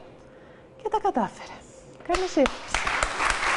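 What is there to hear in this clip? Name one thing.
A woman speaks briefly and cheerfully into a microphone.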